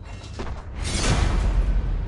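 A heavy claw scrapes on stone.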